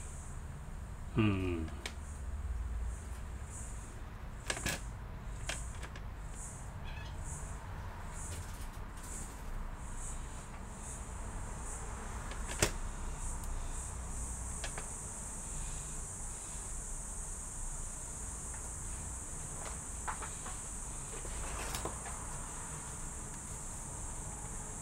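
Small plastic parts click and tap as a laptop is handled.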